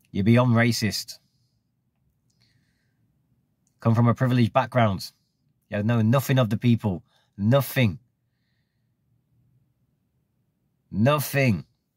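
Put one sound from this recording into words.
A middle-aged man speaks calmly and close up, in short bursts with pauses.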